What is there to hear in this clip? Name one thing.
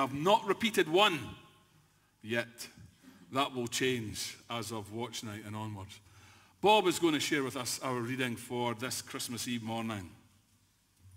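An older man speaks with animation into a microphone in a large echoing hall.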